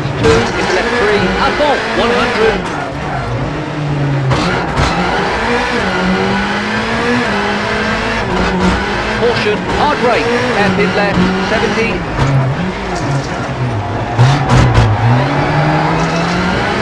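A rally car engine roars, revving up and dropping as gears change.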